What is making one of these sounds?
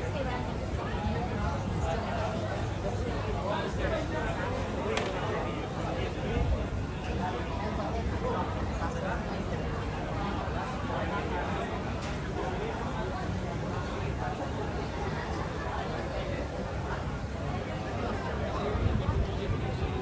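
A crowd of people chatters nearby in the open air.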